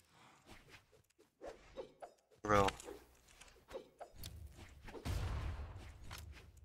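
Video game fighters clash with quick whooshes and hits.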